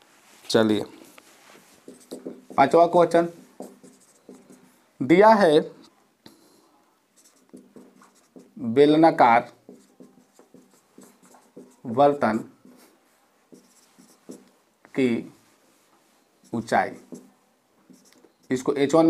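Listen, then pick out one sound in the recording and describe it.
A man speaks in short bursts with pauses, close to a microphone.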